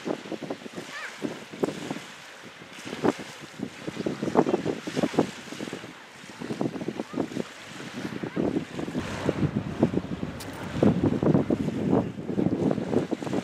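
Wind gusts and buffets loudly outdoors.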